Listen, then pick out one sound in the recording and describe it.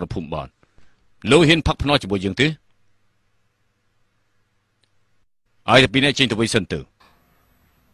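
A middle-aged man speaks firmly and close by.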